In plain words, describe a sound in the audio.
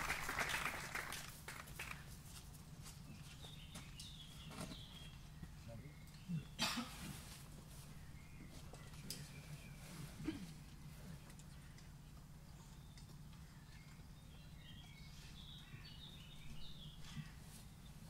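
A small string and woodwind ensemble plays music softly outdoors.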